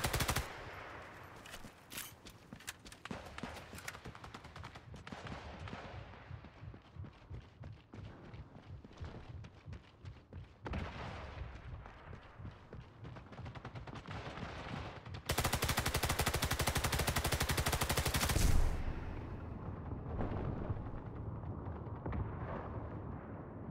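Footsteps crunch over rubble and gravel.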